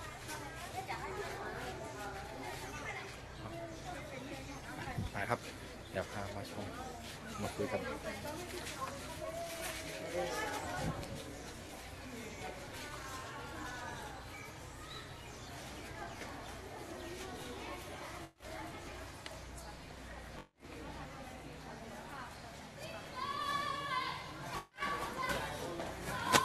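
Young women chat and laugh nearby outdoors.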